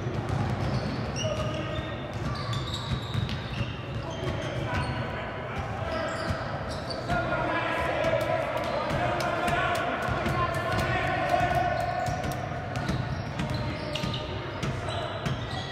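A basketball thuds as it is dribbled.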